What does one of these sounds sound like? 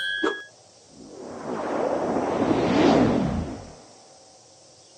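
A whoosh sweeps past.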